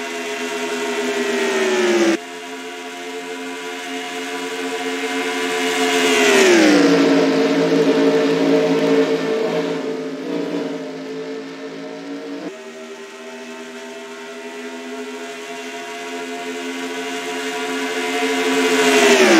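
Race car engines roar loudly at high speed, their pitch falling and rising as the cars pass.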